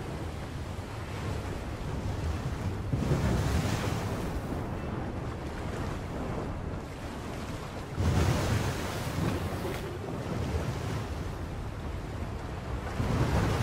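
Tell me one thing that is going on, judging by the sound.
Rough sea waves surge and crash in a strong wind.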